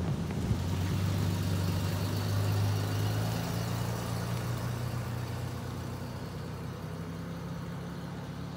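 A van engine rumbles close by and fades as the van drives away.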